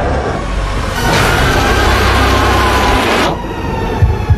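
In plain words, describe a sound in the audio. A monster lets out a loud, harsh shriek.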